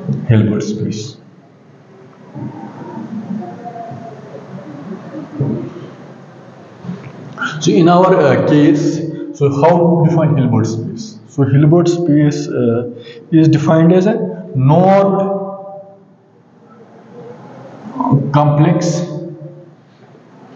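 A man speaks calmly, as if teaching.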